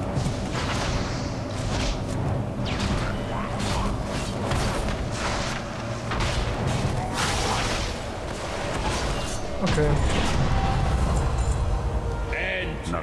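Game combat sounds clash and crackle with spell effects.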